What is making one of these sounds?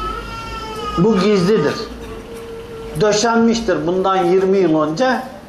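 An elderly man chants loudly in a drawn-out, wavering voice nearby.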